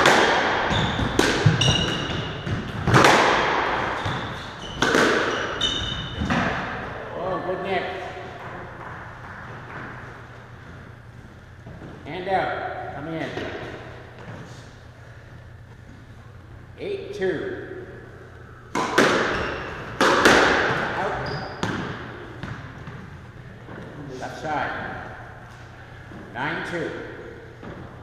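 A squash ball smacks hard against the walls, echoing around a hard-walled court.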